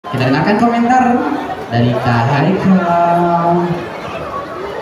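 A young man sings into a microphone through loudspeakers in a large echoing hall.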